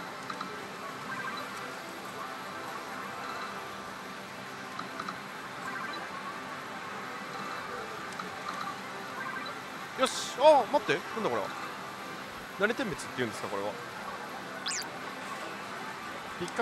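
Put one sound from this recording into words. A slot machine plays steady electronic music and jingles.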